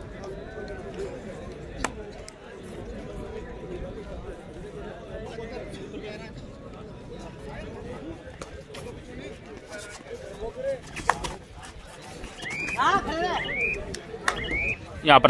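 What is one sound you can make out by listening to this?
A crowd of spectators murmurs and chatters.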